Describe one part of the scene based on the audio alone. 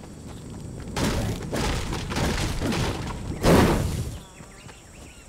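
A pickaxe strikes wood in quick, loud blows.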